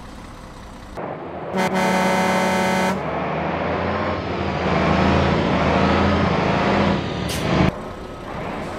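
Truck engines rumble and roar as they drive past.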